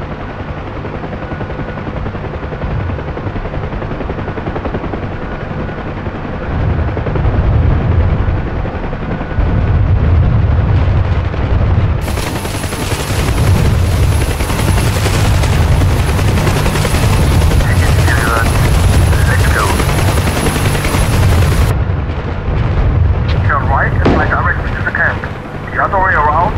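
A helicopter's rotor thumps steadily with a whining engine.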